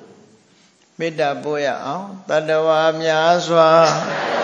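A man chants in a drawn-out, wavering voice.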